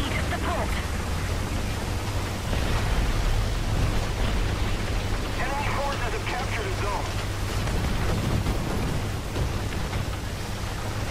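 Water splashes and churns around a tank moving through it.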